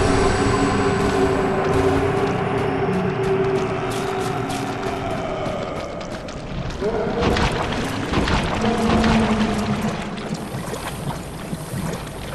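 Armoured footsteps crunch over rocky ground.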